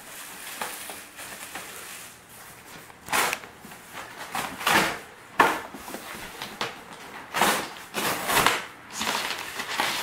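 Cardboard flaps scrape and thump.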